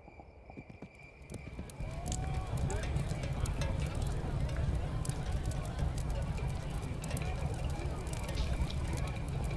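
A horse's hooves clop steadily along the ground.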